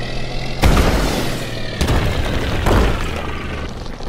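A small vehicle bursts apart with loud crashing blasts.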